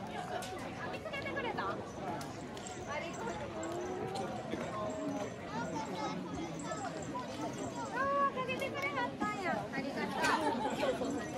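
Several men and women talk with animation close by.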